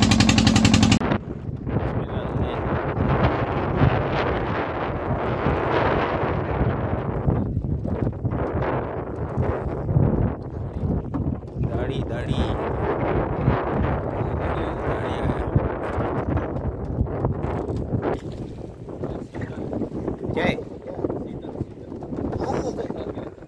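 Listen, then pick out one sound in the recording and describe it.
Waves slap against the hull of a small boat.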